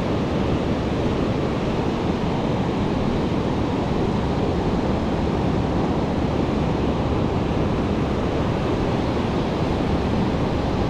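Waves break and wash onto the shore in the distance.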